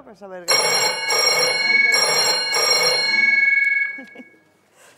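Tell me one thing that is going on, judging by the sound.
An old telephone bell rings loudly in short bursts.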